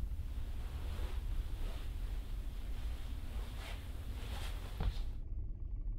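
Footsteps thud on a creaking wooden floor.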